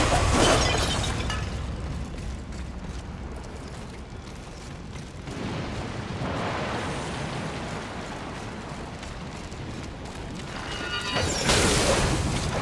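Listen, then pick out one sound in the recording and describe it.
Footsteps patter on stone.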